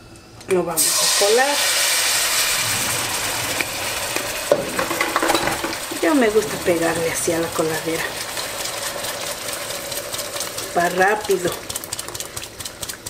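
Thick sauce pours and splashes through a metal strainer into a pan.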